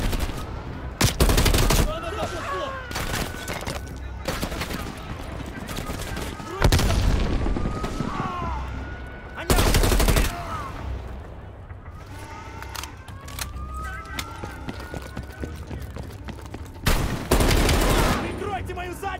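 A rifle fires loud, rapid bursts of shots.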